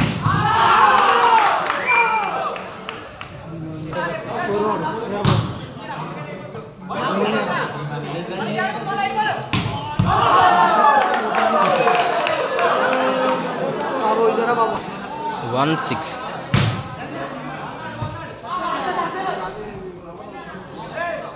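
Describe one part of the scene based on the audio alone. A crowd of young men shouts and cheers loudly outdoors.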